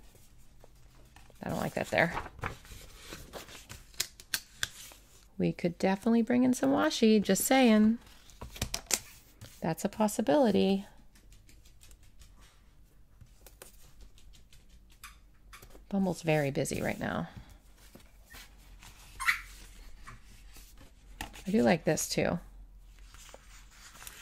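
Paper rustles and crinkles softly.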